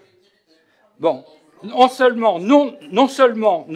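An elderly man speaks clearly and steadily into a microphone.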